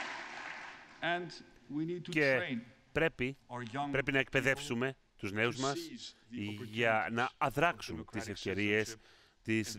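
A middle-aged man speaks calmly into a microphone, his voice echoing in a large hall.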